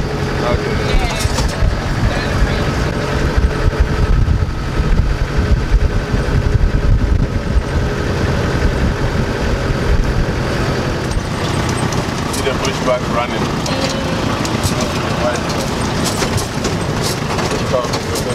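Tyres crunch and rattle over a dirt track.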